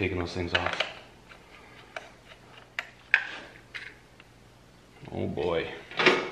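A plastic switch housing clicks and rattles in a hand.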